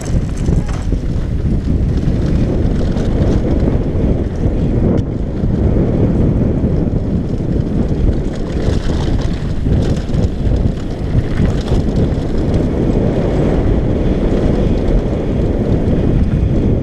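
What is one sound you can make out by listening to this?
Bike tyres rumble and crunch over a gravel trail.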